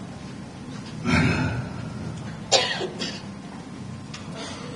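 A man speaks into a microphone, with pauses.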